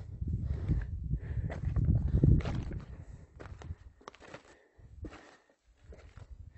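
Footsteps crunch on a rocky path.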